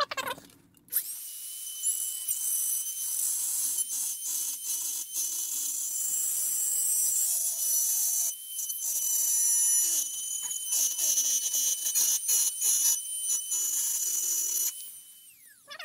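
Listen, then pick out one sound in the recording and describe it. A small rotary tool whines at high speed, grinding.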